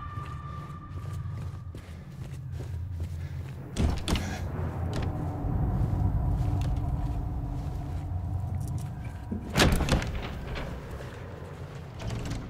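Footsteps tread on a hard floor.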